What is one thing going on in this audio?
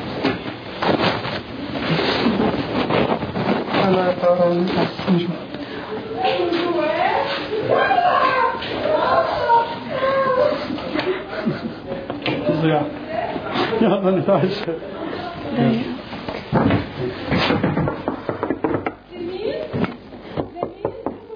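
Young men and women talk over one another with emotion close by.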